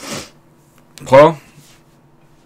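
A man speaks briefly and quietly close to a microphone.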